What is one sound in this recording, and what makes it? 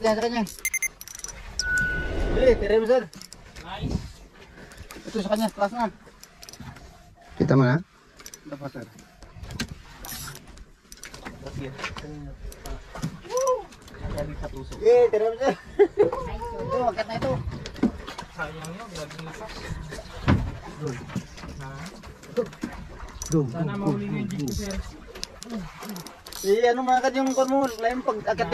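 A fishing reel clicks as its line is wound in.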